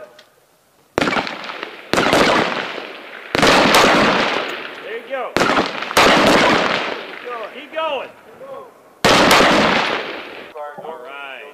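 Rifle shots crack loudly, one after another, echoing outdoors.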